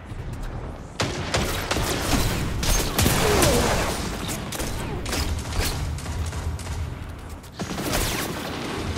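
Weapons fire and blows clash in close combat.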